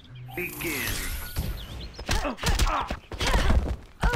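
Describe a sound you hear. Punches and kicks land with heavy thuds in a video game fight.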